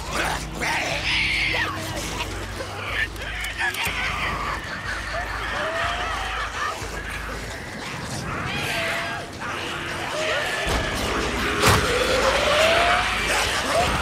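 Footsteps crunch over wet ground.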